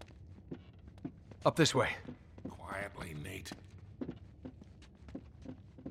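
Footsteps thud on stone stairs.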